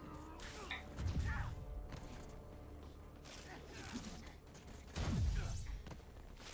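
Punches and blows thud in a video game fight.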